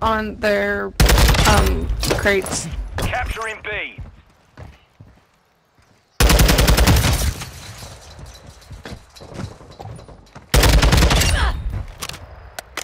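Rapid gunfire bursts in loud volleys.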